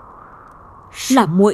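A young woman speaks in a sad, trembling voice close by.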